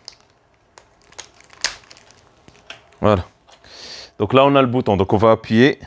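Cables rattle and click in a man's hands.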